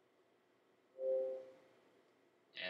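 A game console menu gives a short electronic chime.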